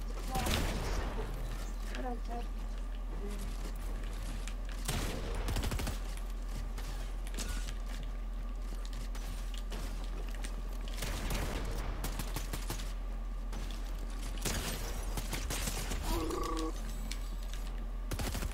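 Video game building pieces snap into place in quick bursts of clatter.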